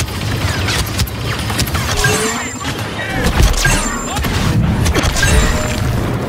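Blaster bolts zap and deflect off a lightsaber with sparking cracks.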